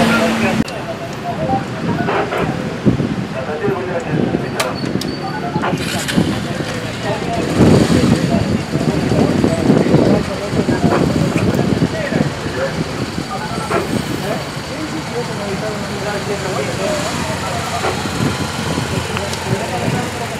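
A motorcycle engine idles close by.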